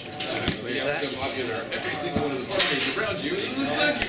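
Cards slap softly onto a table.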